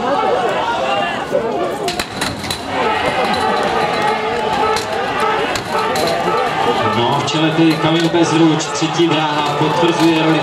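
Metal ladders clatter and knock against a wall.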